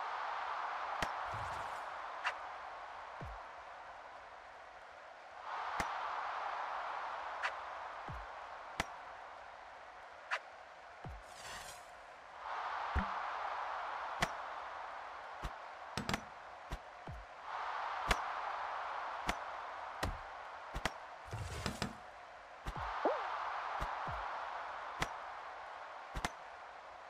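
Game sound effects pop and thud as cartoon characters punch each other.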